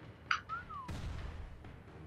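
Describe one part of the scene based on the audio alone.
An explosion bursts with a loud crackle.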